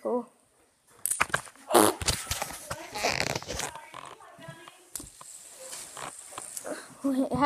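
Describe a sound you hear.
Fingers rub and bump against a microphone.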